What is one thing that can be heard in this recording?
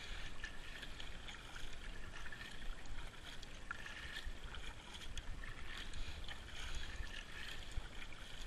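Water laps and trickles along a moving boat's hull.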